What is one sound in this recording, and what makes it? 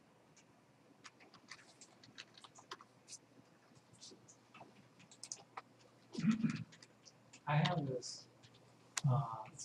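Computer keys click as someone types.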